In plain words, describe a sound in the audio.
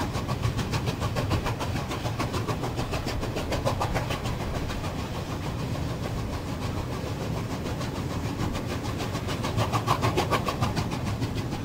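A steam locomotive chuffs rhythmically in the distance as it hauls a train.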